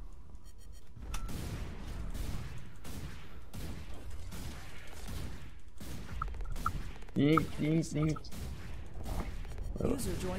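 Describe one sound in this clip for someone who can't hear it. A heavy gun fires repeated booming shots.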